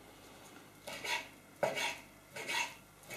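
A knife cuts on a wooden board with soft knocks.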